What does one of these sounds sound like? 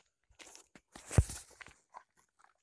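Fingers rub against a microphone with a loud scrape.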